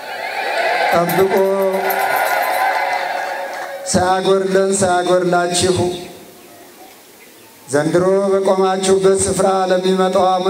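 An elderly man chants in a loud singing voice through a microphone and loudspeakers.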